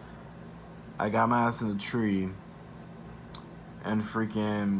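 A young man speaks casually, close to a microphone.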